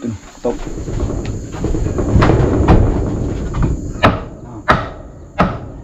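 Bare footsteps thud on a wooden floor.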